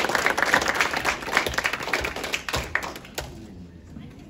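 A small group claps in a room, and the clapping dies away.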